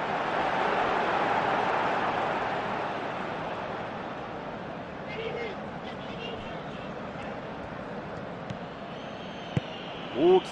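A stadium crowd roars, then quiets down.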